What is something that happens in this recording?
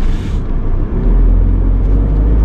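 A car engine revs up as the car pulls off.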